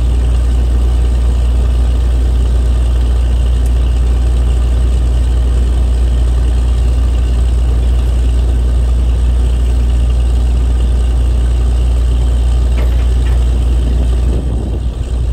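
A diesel engine drones loudly and steadily close by.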